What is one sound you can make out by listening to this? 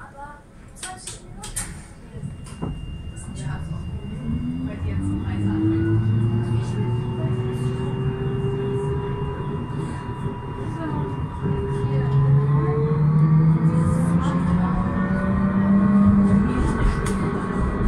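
Tram wheels rumble on the rails.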